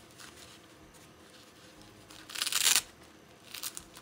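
A plastic diaper crinkles as hands fasten it.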